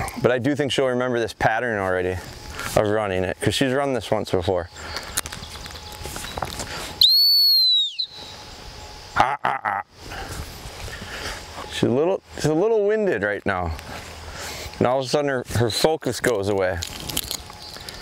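A man speaks calmly from a short distance outdoors.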